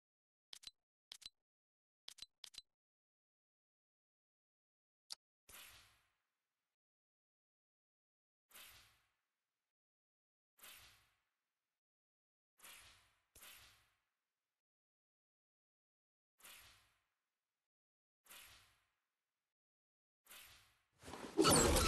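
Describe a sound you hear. Soft interface whooshes and clicks sound each time a game menu page changes.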